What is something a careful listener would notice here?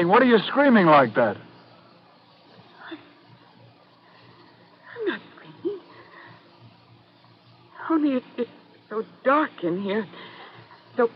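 A woman cries out and speaks in anguish through a microphone, in short bursts.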